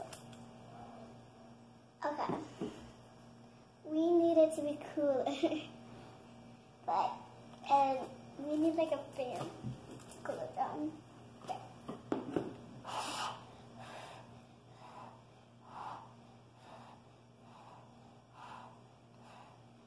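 A young girl sips through a straw with soft slurping sounds.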